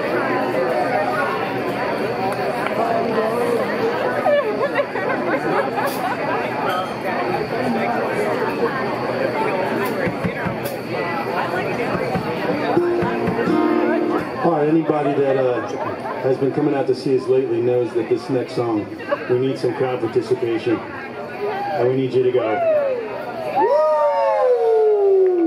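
Electric guitars play loudly outdoors.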